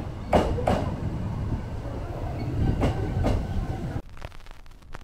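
A train rumbles slowly alongside a platform.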